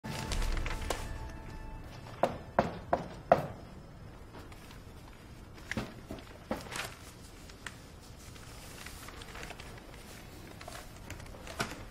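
Newspaper pages rustle and crinkle.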